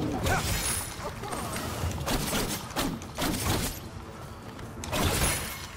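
Fiery blasts burst with a whoosh.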